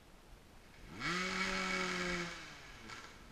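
A dirt bike engine revs up briefly nearby.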